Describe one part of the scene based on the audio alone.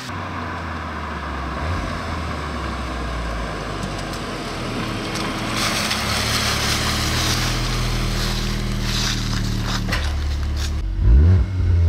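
A car engine hums as the car drives closer and passes by.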